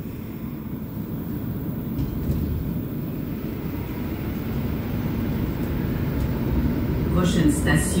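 A subway train rumbles low and steadily as it pulls out of a station.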